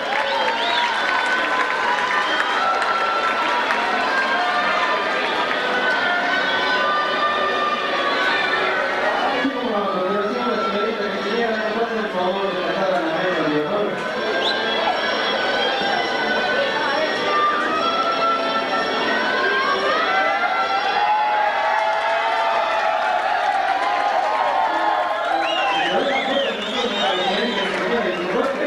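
Music plays through loudspeakers in a large hall.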